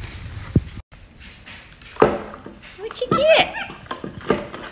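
A plastic container knocks and rattles on a wooden floor.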